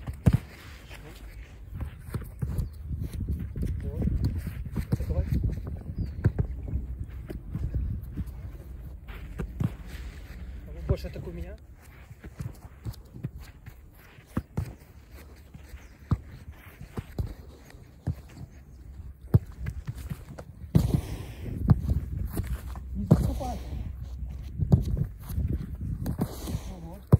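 A football thuds against goalkeeper gloves.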